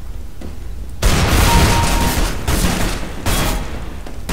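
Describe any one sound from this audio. Gunshots ring out in loud, rapid bursts.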